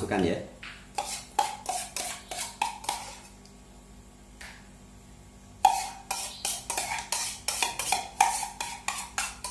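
A spoon scrapes and taps against a metal cup.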